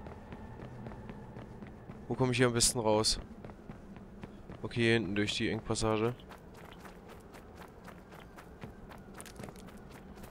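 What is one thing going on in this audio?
Quick footsteps run over hard ground and grass.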